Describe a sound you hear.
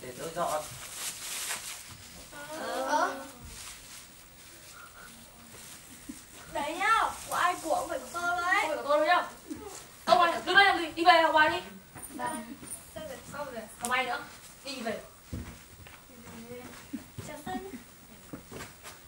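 Young people talk and laugh in a large echoing hall.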